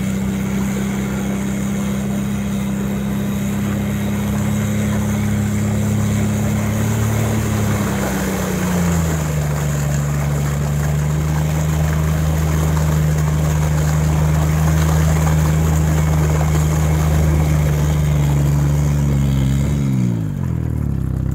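A tracked vehicle's engine roars steadily nearby, then drops in pitch and cuts out.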